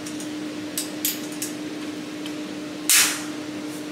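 A metal latch snaps shut.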